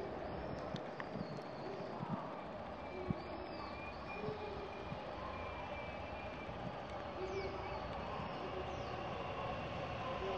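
An electric train approaches along the tracks with a steady rumble that slowly grows louder.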